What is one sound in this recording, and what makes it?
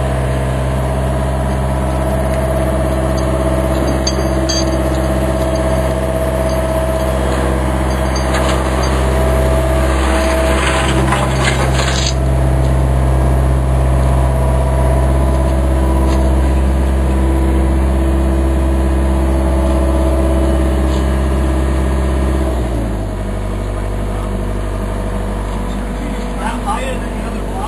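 An excavator's diesel engine rumbles steadily close by, then idles lower.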